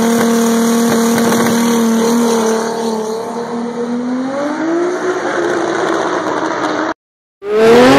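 A race car engine roars loudly and accelerates away.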